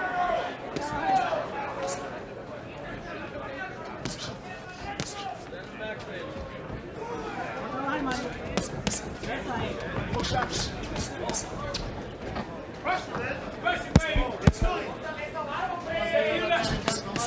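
A crowd cheers and shouts in a large hall.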